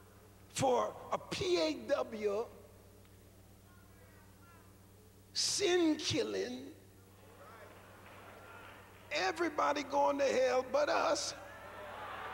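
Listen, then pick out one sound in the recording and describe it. A man preaches with animation into a microphone in a large echoing hall.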